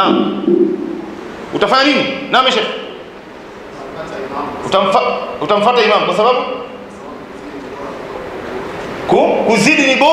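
A man speaks into a microphone with animation, heard through a loudspeaker in an echoing room.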